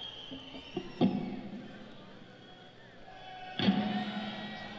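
A drum is struck hard.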